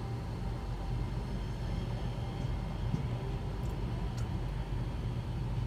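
A tram rolls past on its rails.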